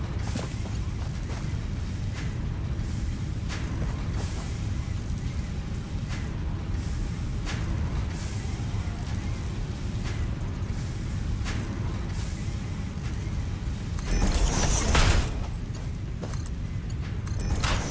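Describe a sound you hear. Short soft clicks sound every few seconds.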